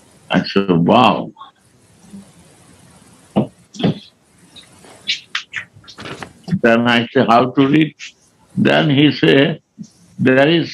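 An elderly man speaks slowly and expressively, close to a microphone, with pauses.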